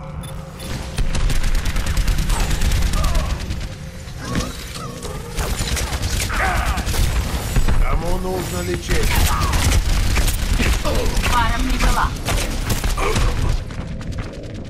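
Rapid gunfire rattles and bangs.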